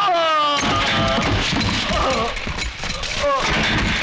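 Metal chairs clatter and scrape across a hard floor.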